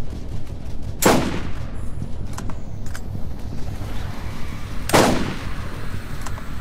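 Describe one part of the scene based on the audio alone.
A sniper rifle fires two loud, booming shots that ring out briefly.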